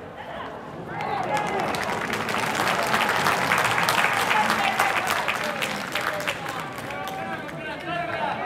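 Young men shout and cheer outdoors at a distance.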